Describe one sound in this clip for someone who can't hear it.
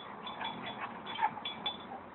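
A dog pants.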